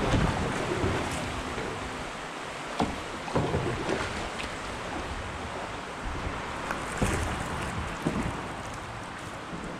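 Water gently splashes and laps as a paddle moves through a river.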